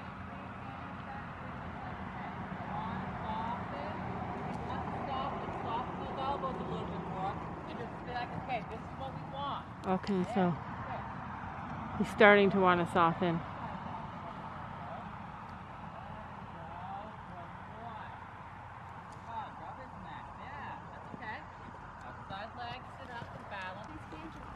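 A woman talks and calls out nearby, outdoors.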